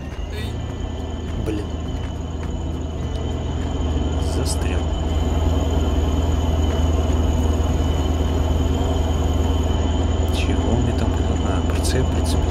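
A heavy tractor engine rumbles steadily and grows louder.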